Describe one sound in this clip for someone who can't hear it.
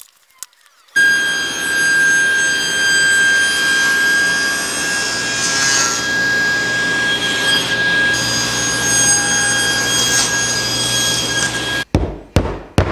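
A table saw runs with a loud steady whine.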